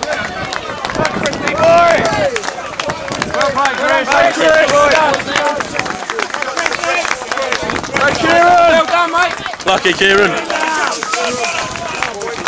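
A man nearby claps his hands.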